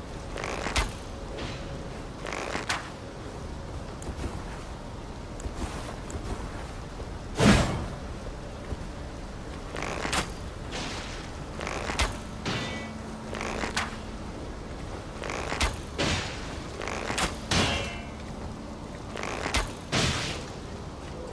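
A halberd swings through the air with sharp whooshes.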